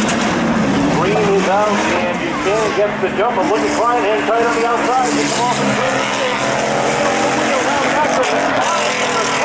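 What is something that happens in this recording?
Car engines roar and rev up and down.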